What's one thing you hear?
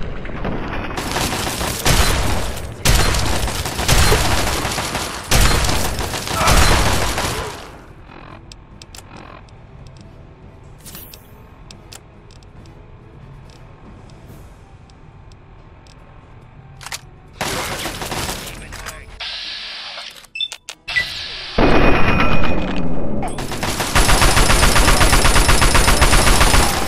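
Shotguns fire loud, booming blasts in quick bursts.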